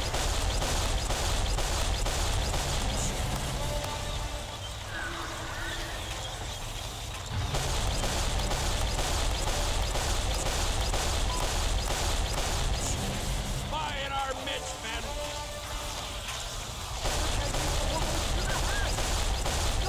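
A heavy rapid-fire gun blasts in long, steady bursts.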